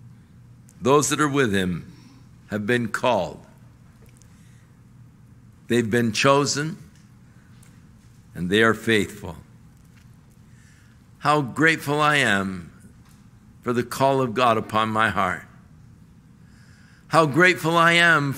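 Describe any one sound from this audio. An elderly man speaks with emphasis into a microphone, in short bursts separated by pauses.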